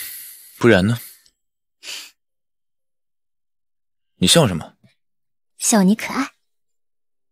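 A young man speaks quietly and close by in short phrases.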